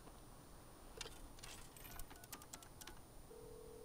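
Phone keypad buttons click.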